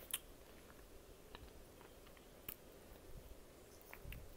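Fingers crumble and crunch something brittle in a bowl close by.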